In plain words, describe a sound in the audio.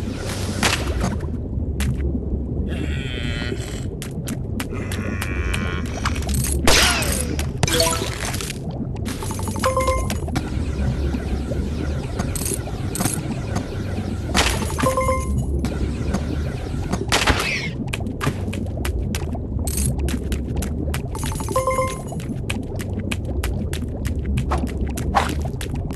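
Game music plays steadily in a repeating loop.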